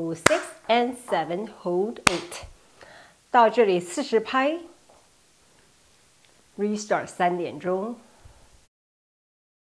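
A young woman speaks calmly and clearly into a close microphone.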